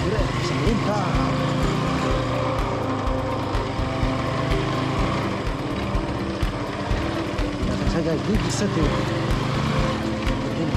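A motorbike engine runs steadily.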